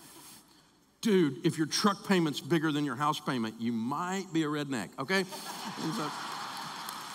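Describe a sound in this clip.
An older man speaks with animation through a microphone in a large hall.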